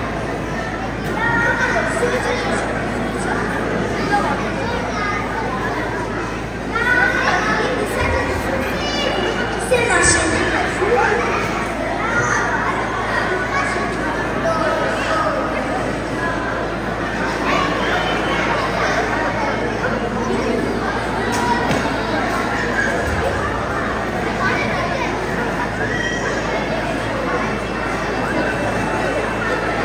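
Children sing together in a hall.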